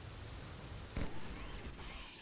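An electric bolt crackles and zaps.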